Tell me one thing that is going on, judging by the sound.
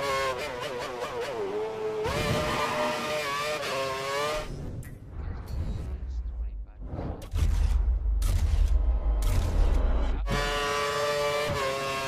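A racing car engine whines at high revs, shifting gears.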